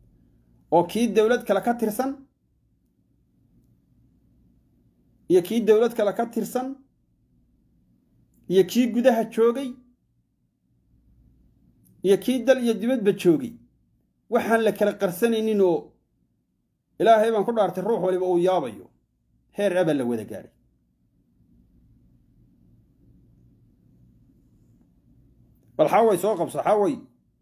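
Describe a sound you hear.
A man speaks calmly and close to a phone microphone, in short bursts with pauses.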